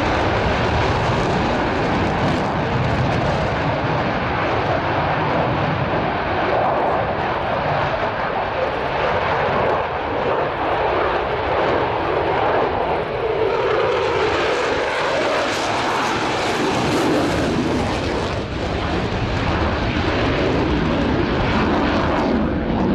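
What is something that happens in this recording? A fighter jet roars loudly overhead, its engine rumbling and shifting in pitch as it turns.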